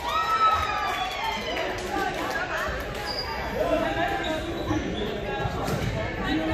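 Girls cheer and chatter with excitement in a large echoing hall.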